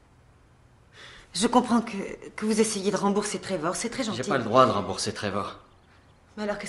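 A woman speaks close by, upset and intense.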